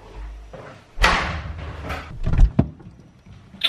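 A fridge door opens with a soft thud.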